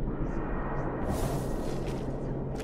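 A magical whoosh rushes past.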